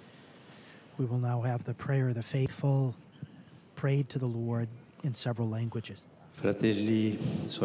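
An elderly man speaks slowly and solemnly into a microphone, heard through loudspeakers.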